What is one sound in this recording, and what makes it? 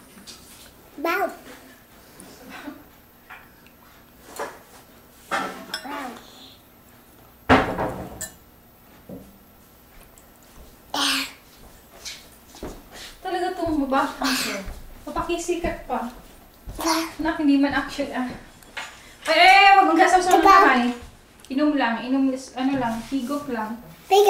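A young child slurps soup loudly from a bowl.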